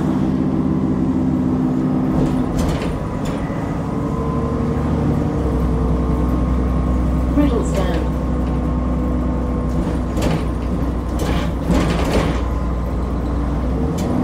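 A bus engine hums and drones steadily.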